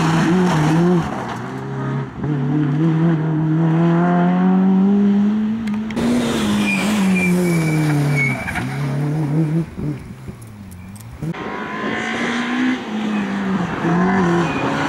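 A rally car engine roars loudly, revving up and dropping as gears change.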